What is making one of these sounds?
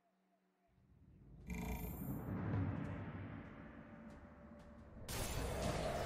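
Battle sound effects clash and rumble.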